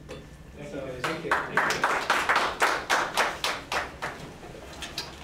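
A small audience claps briefly.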